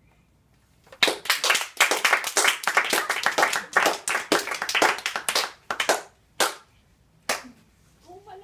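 Bare feet thump quickly on a wooden floor.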